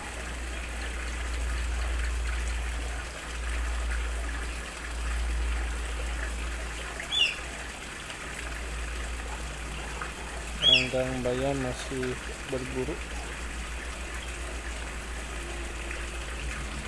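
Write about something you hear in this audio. Water trickles gently into a pond.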